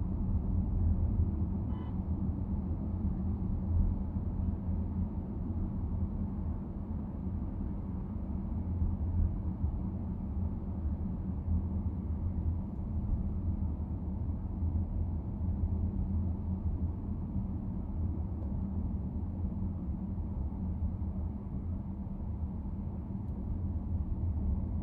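Tyres roll on a paved road with a steady low rumble.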